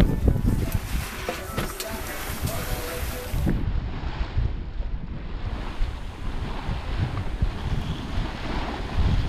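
Wind blusters noisily outdoors.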